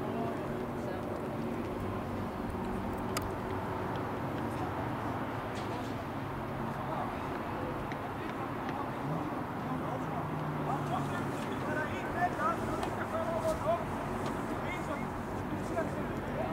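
Young men call out to each other across an open outdoor pitch, heard from a distance.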